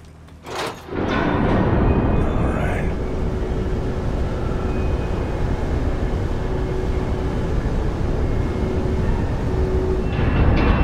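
Water churns and rushes loudly.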